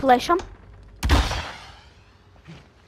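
A pistol fires a single loud shot that echoes briefly.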